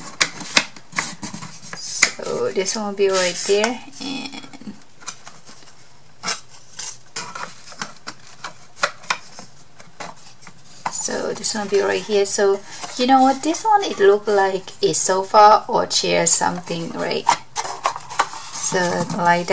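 Cardboard parts rustle and scrape as they are handled.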